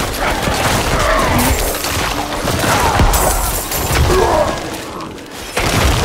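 Fantasy combat sounds crash and whoosh with rapid blows and magical blasts.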